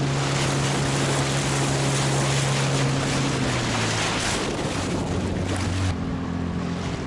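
Water splashes and rushes against an inflatable boat's hull.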